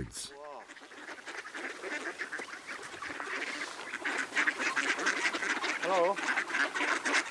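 Many ducks quack loudly and busily close by, growing more excited.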